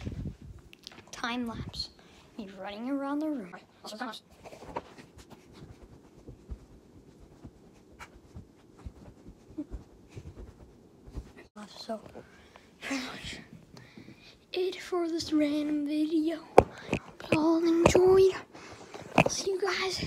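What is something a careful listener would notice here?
A young boy talks close to the microphone with animation.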